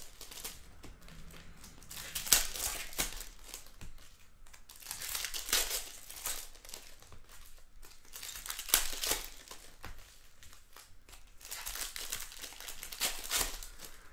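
Trading cards rustle and slap softly as they are shuffled in hand.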